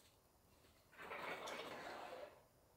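A drawer slides open with a clatter of dishes.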